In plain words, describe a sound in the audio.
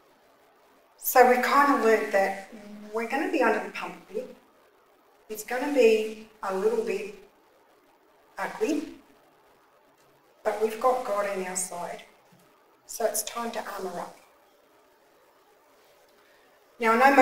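A middle-aged woman speaks calmly into a microphone, with pauses.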